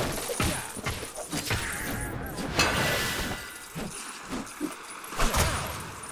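Small plastic bricks scatter and clatter.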